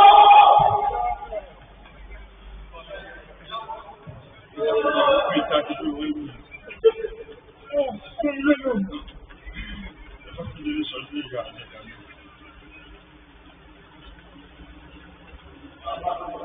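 Men call out to each other from across a large echoing hall.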